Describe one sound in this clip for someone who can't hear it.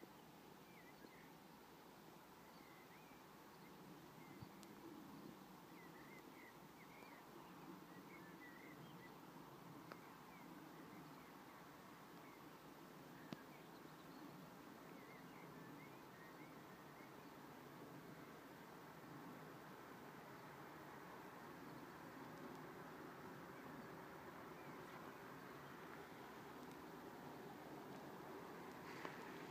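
Wind blows steadily across open grassland outdoors.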